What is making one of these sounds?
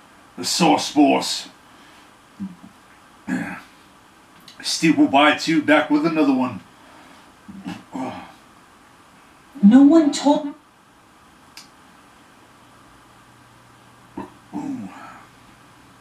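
A man speaks close by in bursts, with pauses between phrases.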